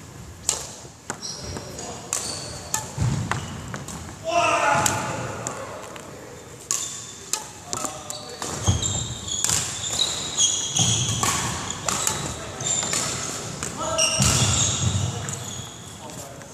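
A badminton racket smacks a shuttlecock in an echoing hall.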